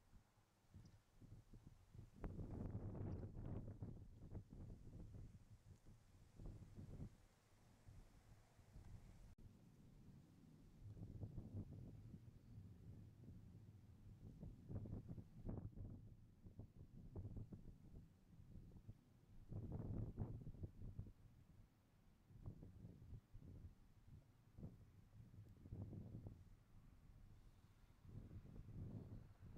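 Wind gusts blow across an open field.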